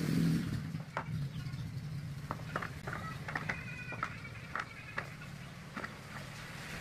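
Carrot slices tumble and clatter into a plastic container.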